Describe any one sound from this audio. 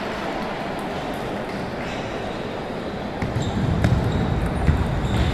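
A ping pong ball clicks back and forth across a table.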